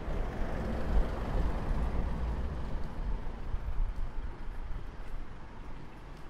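A car drives past close by and fades away.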